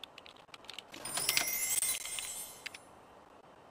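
A bright chime rings as money is earned.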